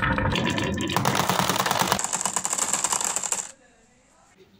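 Glass marbles roll and clatter down a wooden track.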